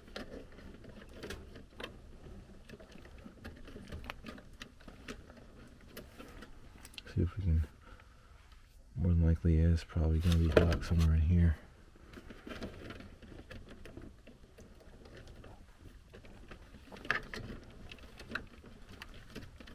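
Plastic-coated wires rustle and click as they are handled.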